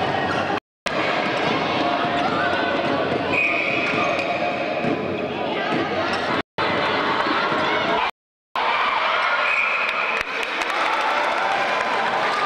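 A large crowd cheers and chatters in an echoing hall.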